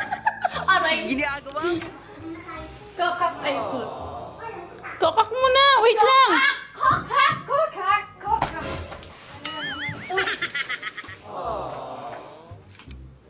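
A young girl talks and squeals excitedly close by.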